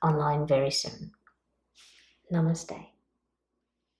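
A woman speaks warmly and close to a microphone.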